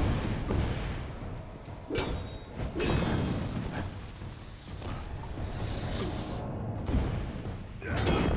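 Swords clash and strike with sharp hits.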